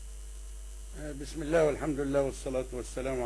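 An elderly man speaks firmly over a broadcast link.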